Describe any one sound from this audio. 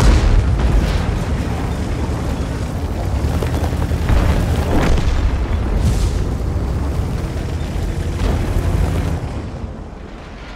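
A tank engine rumbles deeply.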